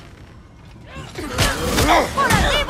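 A battle erupts with magical crackling and clashing.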